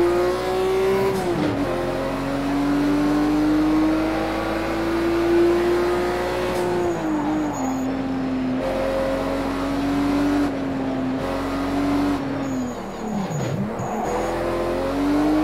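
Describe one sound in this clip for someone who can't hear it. A car engine revs high and steady, dropping in pitch with each gear change.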